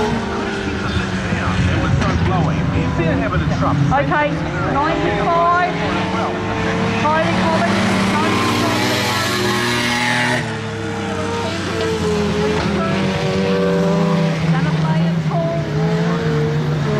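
Tyres crunch and skid on loose dirt.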